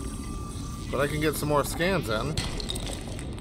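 A rock cracks and breaks apart with a thud.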